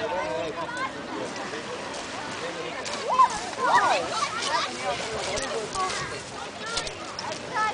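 Children shout and call out nearby outdoors.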